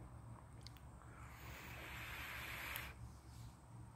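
A man draws a long breath through a vape, with a soft crackling hiss.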